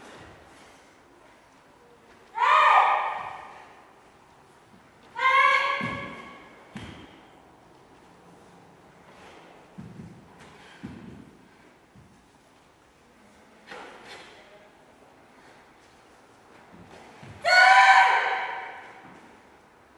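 Bare feet thump and slide on a wooden floor.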